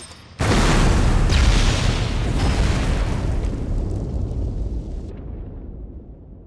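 A loud explosion booms and slowly rumbles away.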